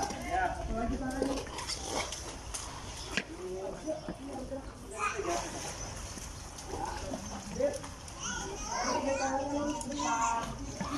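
Water splashes and laps as a man wades through a pool.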